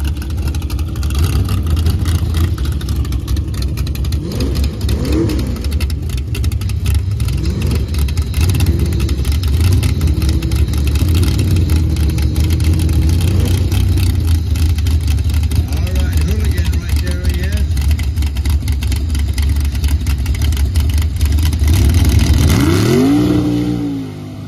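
A loud truck engine rumbles and revs nearby.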